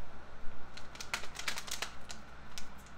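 Scissors snip through tape.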